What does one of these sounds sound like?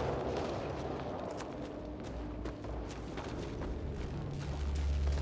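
Fires crackle nearby.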